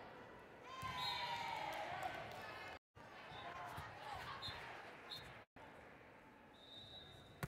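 A crowd of players and spectators chatter and cheer in a large echoing gym.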